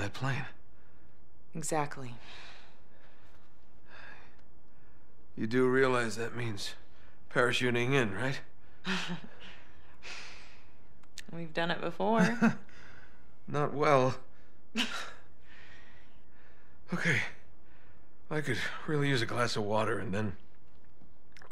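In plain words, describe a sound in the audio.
A man speaks in a calm, wry voice.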